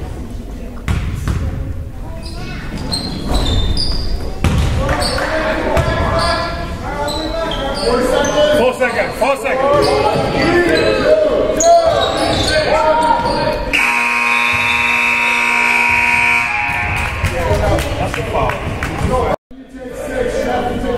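Young players and spectators shout and chatter in a large echoing gym.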